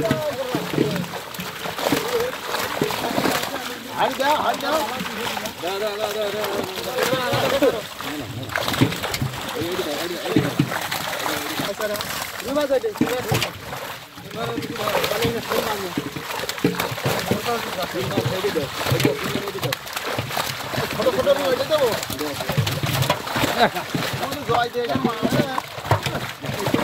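Men talk to one another nearby.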